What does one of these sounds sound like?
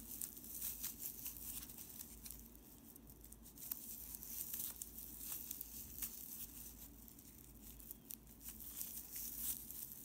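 A crochet hook clicks and scrapes softly against yarn.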